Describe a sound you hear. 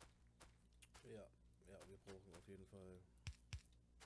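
A man speaks calmly and close into a headset microphone.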